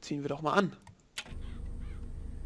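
Heavy wooden doors creak open.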